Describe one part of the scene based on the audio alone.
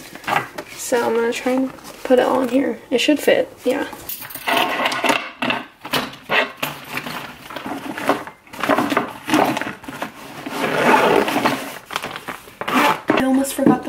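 A nylon bag rustles and crinkles as it is handled.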